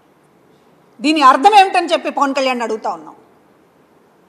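A middle-aged woman speaks firmly into a microphone.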